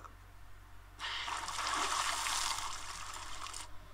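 Water splashes and laps in a pool.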